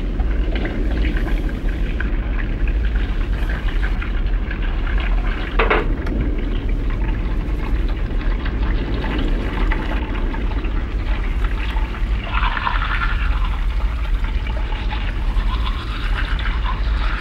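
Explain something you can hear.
Water runs and splashes in a basin.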